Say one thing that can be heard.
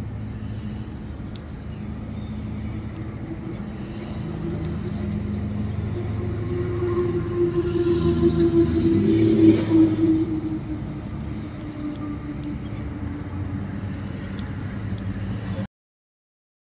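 A squirrel nibbles and crunches a peanut close by.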